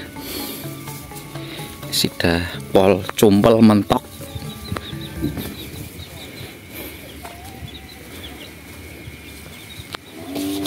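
Footsteps shuffle on a dirt path.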